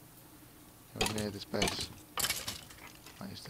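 A sword strikes a rattling skeleton several times.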